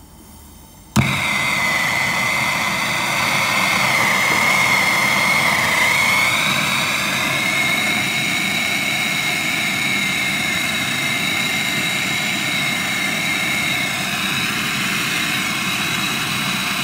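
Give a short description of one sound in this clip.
A gas torch ignites with a pop and roars steadily.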